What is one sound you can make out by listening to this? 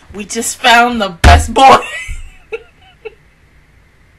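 A young woman laughs loudly into a close microphone.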